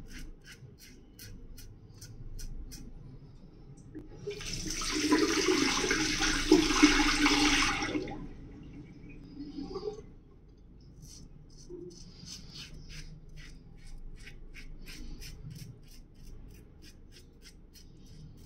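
A razor scrapes in short, quick strokes close by.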